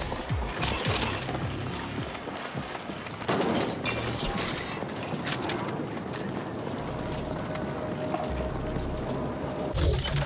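Fires crackle.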